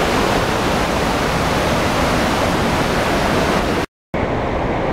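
A fast river rushes loudly over rocks.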